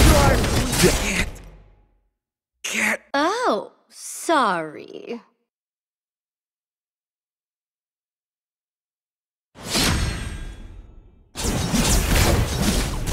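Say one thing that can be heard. Weapons clash and magic blasts boom in a fast fight.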